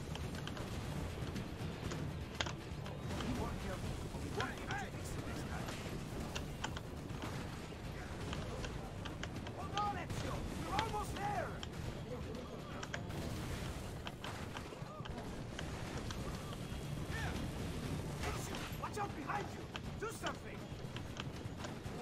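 Guns fire in sharp cracks.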